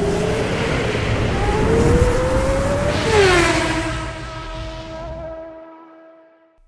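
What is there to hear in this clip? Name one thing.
A racing car engine roars and then fades away.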